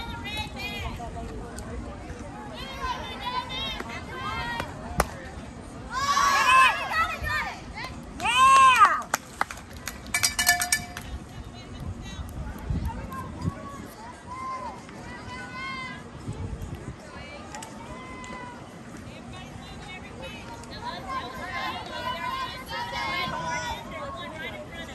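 Players call out to each other across an open field.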